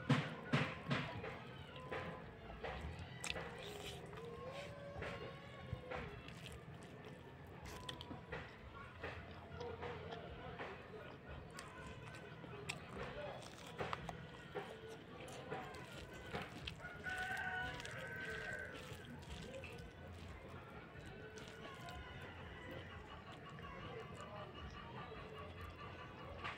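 Fingers squish and mix rice.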